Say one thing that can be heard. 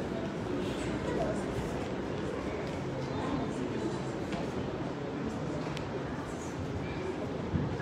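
Footsteps walk across a wooden stage.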